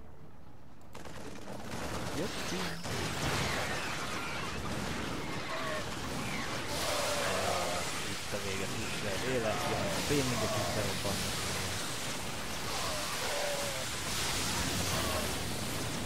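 Rapid gunfire and explosions clatter in a noisy battle.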